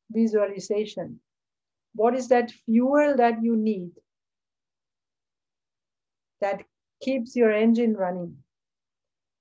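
A woman speaks calmly over a microphone, pausing between phrases.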